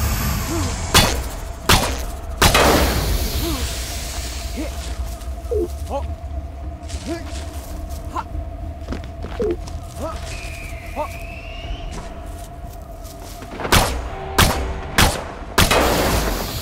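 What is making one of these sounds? Gunshots ring out sharply, a few at a time.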